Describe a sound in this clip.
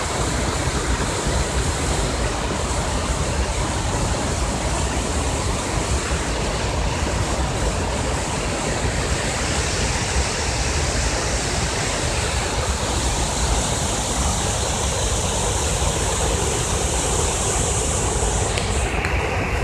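Floodwater rushes and churns over rocks in a channel.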